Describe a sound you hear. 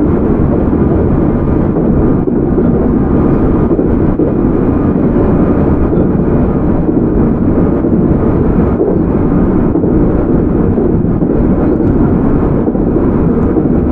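An electric train rumbles along the tracks.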